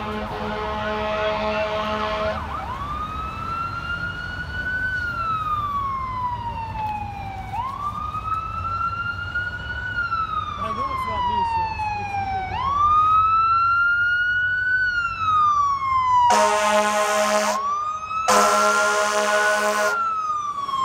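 A fire truck's air horn blasts loudly several times.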